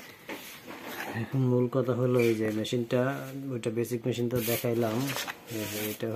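Paper rustles as a hand handles a page.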